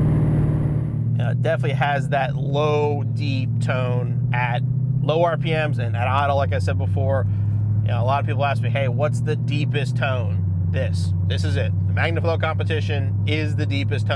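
A car's engine hums steadily at low speed.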